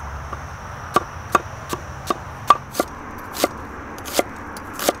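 A knife chops an onion on a wooden board with quick knocks.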